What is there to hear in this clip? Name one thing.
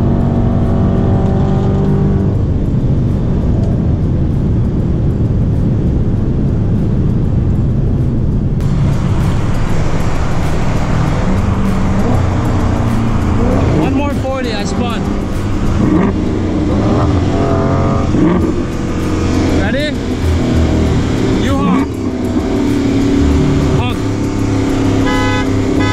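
A car engine roars loudly at high speed.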